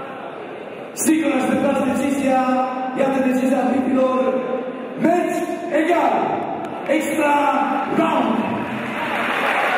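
A man announces loudly and with animation through a microphone and loudspeakers in a large echoing hall.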